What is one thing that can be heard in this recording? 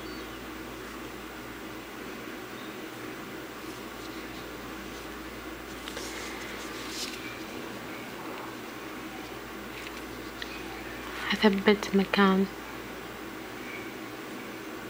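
Thread rustles softly as it is pulled through thick fabric.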